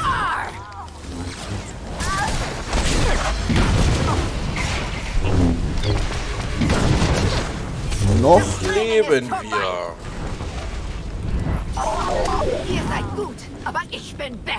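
Energy blades hum and clash in a fast fight.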